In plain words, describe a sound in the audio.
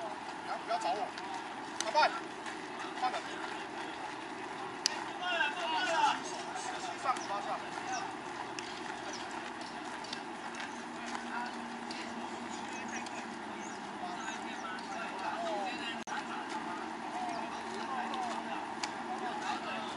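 Young men call out and shout to each other outdoors across an open field.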